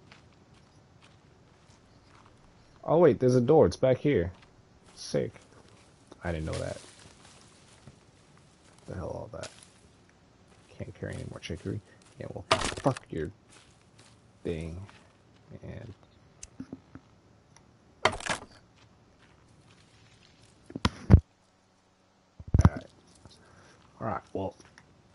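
Footsteps crunch over dry leaves and grass.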